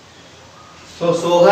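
A man speaks clearly and calmly, close by.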